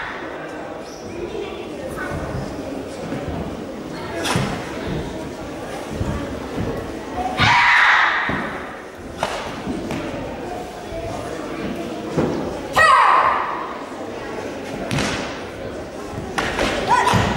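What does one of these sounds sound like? Bare feet thud and slide on a wooden floor.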